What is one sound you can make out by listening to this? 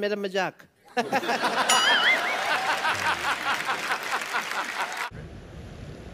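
A man laughs loudly.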